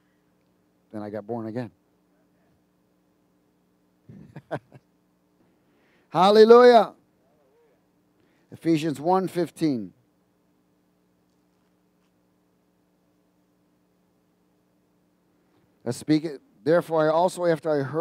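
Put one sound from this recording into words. A middle-aged man speaks slowly and calmly through a headset microphone, with long pauses.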